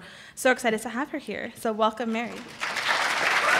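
A woman speaks into a microphone in a large hall.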